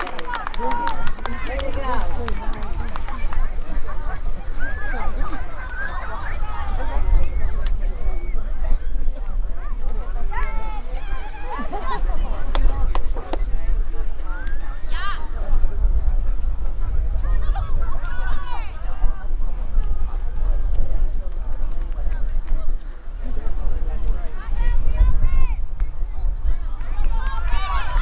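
Young women shout and call out across a field, far off.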